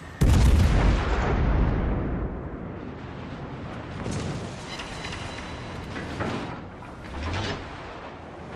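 Shells explode and splash into water.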